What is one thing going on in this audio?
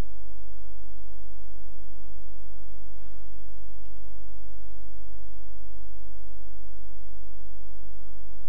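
An electric kettle hums steadily as water heats inside.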